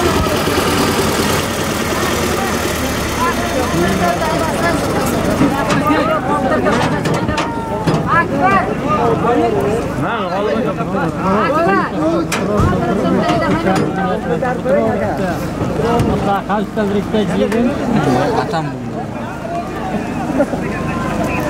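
A crowd of men shouts and calls out across open ground.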